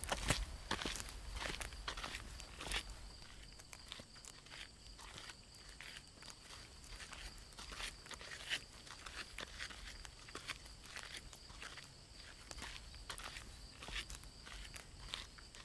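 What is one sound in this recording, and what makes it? Footsteps crunch on a forest path.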